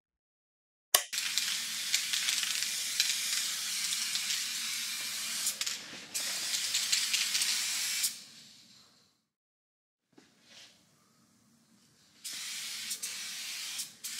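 A spray can hisses in long bursts.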